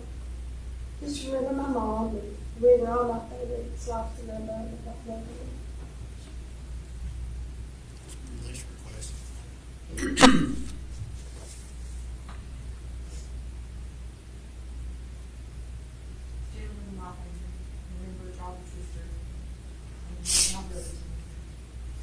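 A man speaks calmly, heard from across a room with a slight echo.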